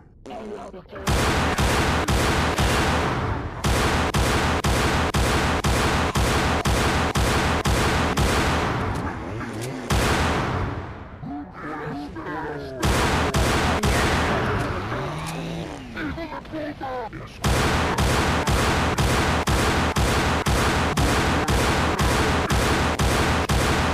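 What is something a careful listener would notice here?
A pistol fires rapid bursts of shots.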